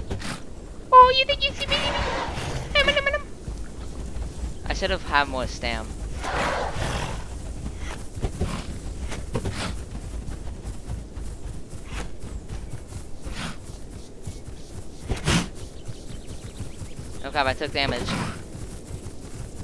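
A large creature lets out shrill, warbling cries.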